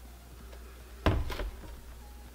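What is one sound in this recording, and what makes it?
An appliance is set down on a counter with a knock.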